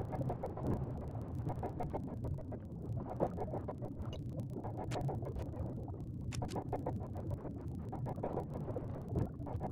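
A large creature's wings flap steadily.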